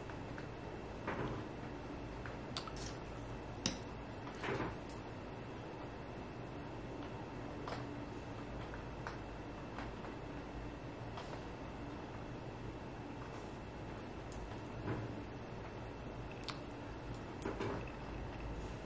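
A mascara tube clicks and taps as it is handled.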